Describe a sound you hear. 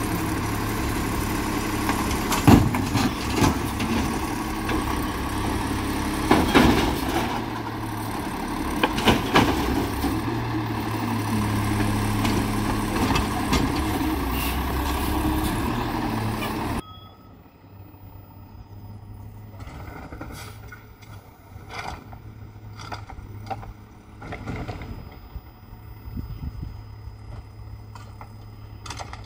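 A truck's hydraulic arm whines as it lifts and dumps a bin.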